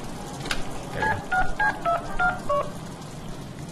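A phone keypad beeps several times in quick succession.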